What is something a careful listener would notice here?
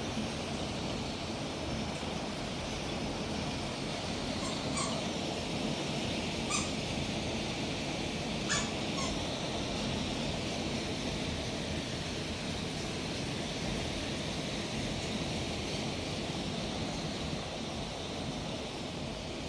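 Hail pours down heavily and steadily, drumming outdoors.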